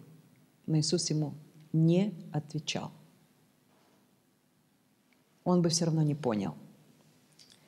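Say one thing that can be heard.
A woman speaks calmly and clearly into a microphone, close by.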